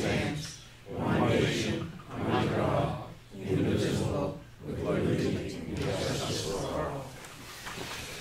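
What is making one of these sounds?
A group of adults recite together in unison in a room.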